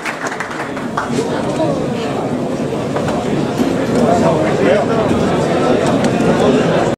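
Many men talk and shout at once in a crowded, echoing room.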